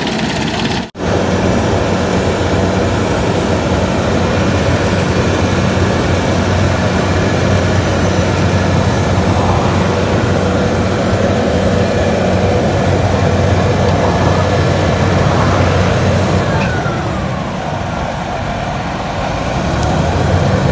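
A large truck's diesel engine idles with a low drone.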